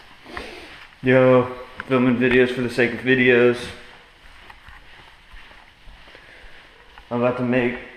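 A young man speaks loudly and expressively, close up.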